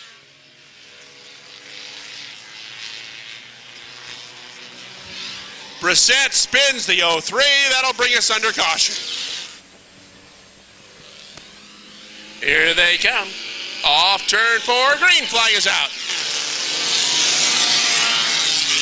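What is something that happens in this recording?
Several race car engines roar as the cars speed around a track.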